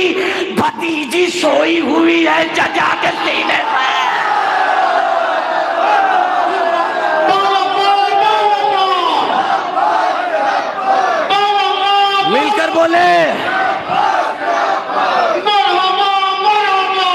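A young man sings a poem into a microphone, heard loud through loudspeakers.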